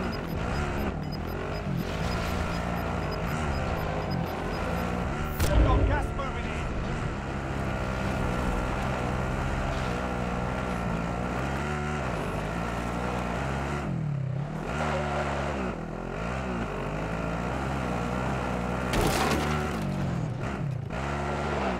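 A quad bike engine drones and revs up and down.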